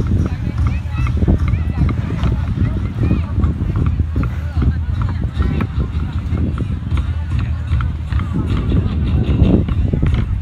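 Several large drums are beaten with sticks in a loose, uneven rhythm outdoors.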